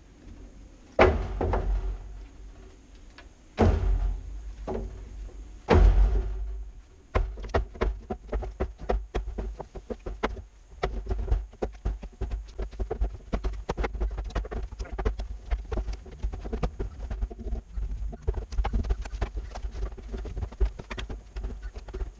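Split firewood logs knock and clatter as they are stacked.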